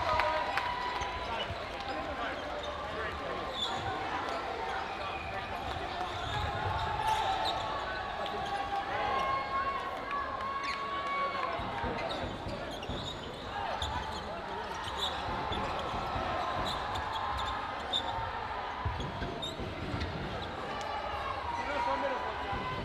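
Voices of players and spectators echo through a large indoor hall.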